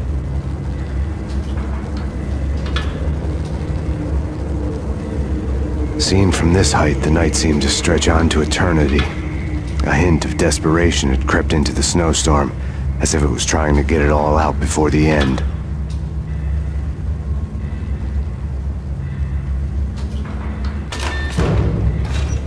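An elevator hums steadily as it rides up.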